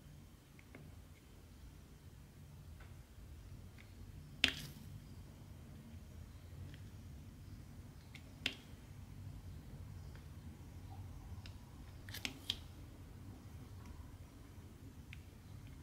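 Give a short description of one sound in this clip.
Tiny plastic beads click softly as they are pressed onto a sticky board.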